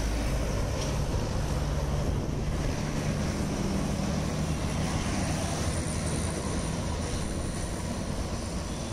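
Traffic rumbles steadily along a busy highway nearby.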